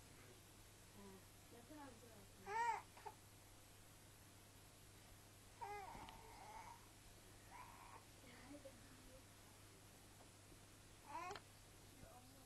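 A baby coos and squeals close by.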